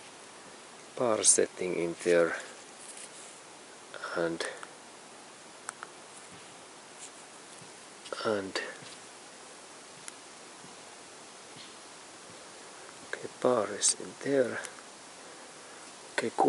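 Buttons click softly on a handheld gauge.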